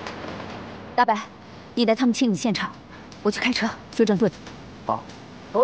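A young woman speaks calmly and firmly.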